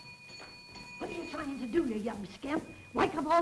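An elderly woman speaks.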